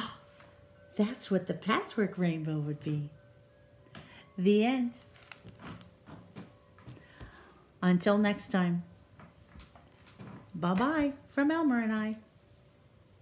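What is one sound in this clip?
A woman speaks warmly and with animation close by.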